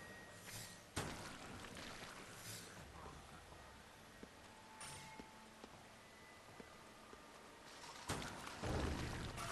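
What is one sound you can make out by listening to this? Gunshots bang out loudly.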